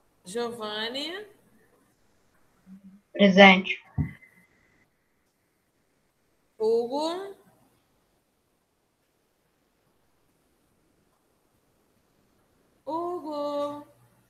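A woman speaks calmly in short phrases through an online call.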